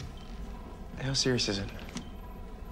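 A young man speaks sharply, close by.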